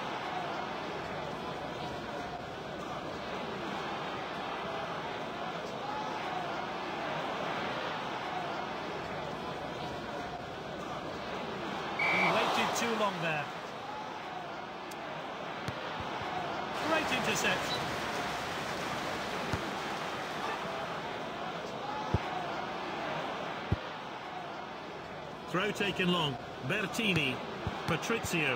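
A large crowd murmurs and roars steadily in a stadium.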